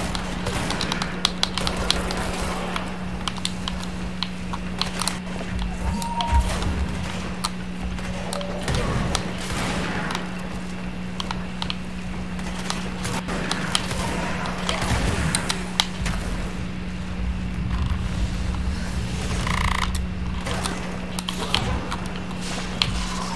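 Rapid gunshots crack and pop over and over.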